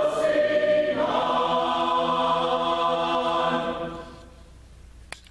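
A choir sings a sustained chord in a large echoing hall, then fades out.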